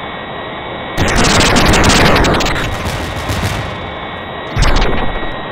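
An explosion bursts and rumbles away.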